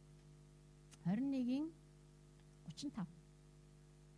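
A middle-aged woman speaks haltingly into a microphone, heard through a loudspeaker.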